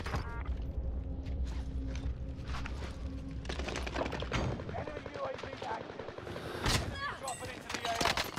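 Footsteps run on hard pavement.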